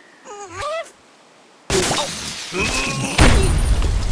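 Wooden blocks crash and shatter in a cartoon game.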